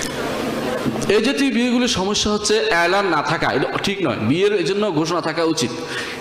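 A man speaks into a microphone in a melodic, chanting voice.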